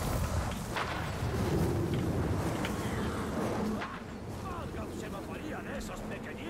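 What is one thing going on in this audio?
A dragon growls.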